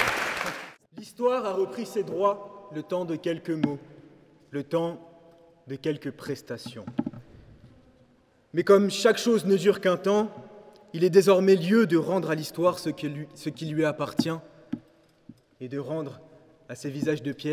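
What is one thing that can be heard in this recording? A young man speaks calmly into a microphone in an echoing hall.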